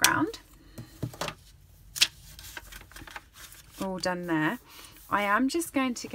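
Stiff paper rustles as it is folded and pressed flat.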